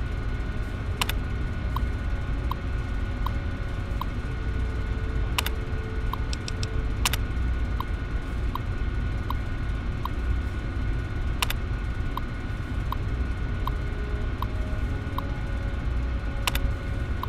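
Keys click sharply a few times.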